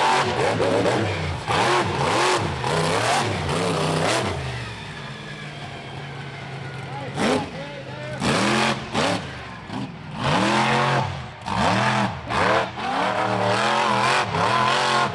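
A monster truck engine roars and revs hard, rising and falling in pitch.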